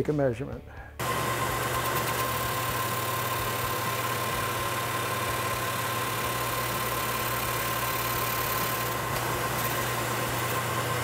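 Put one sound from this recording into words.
A metal lathe runs with a steady hum and whine.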